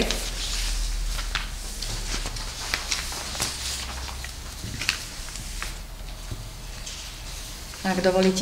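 Papers rustle and pens tap on a table.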